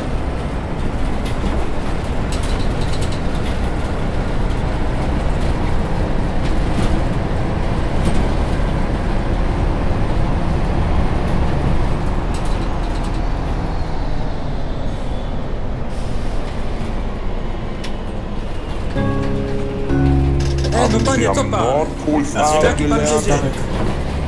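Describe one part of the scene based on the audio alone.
A diesel city bus engine drones as the bus drives along.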